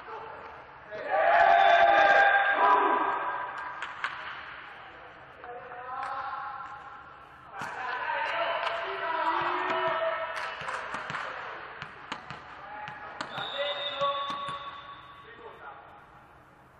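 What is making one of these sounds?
Young men shout and cheer loudly in a large echoing hall.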